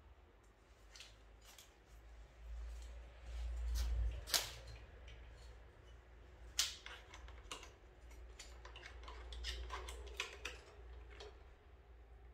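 Metal parts of a scooter click and clack.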